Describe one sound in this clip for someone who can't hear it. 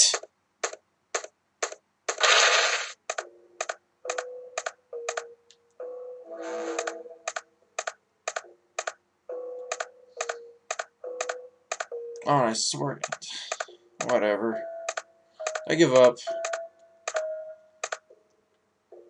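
Quick, even footsteps tap on a hard floor.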